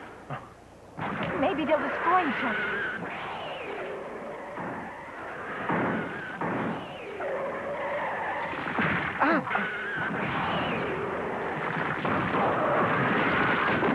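Huge creatures roar with loud, screeching, wavering cries.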